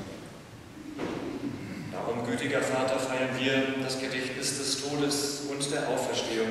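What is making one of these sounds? A man chants in a sung voice through a microphone, echoing in a large hall.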